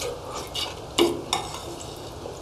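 Chopsticks and a spoon clink against plates.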